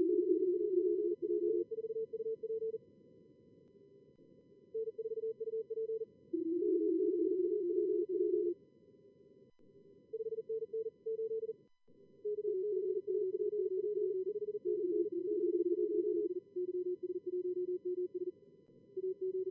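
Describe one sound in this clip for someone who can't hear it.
Several Morse code signals beep quickly at slightly different pitches.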